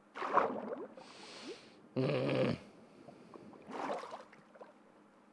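Water bubbles and swishes during swimming underwater.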